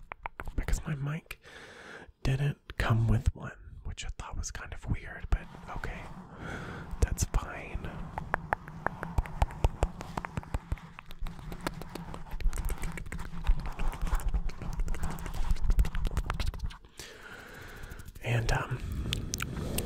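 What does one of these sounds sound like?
A young man whispers softly, very close to a microphone.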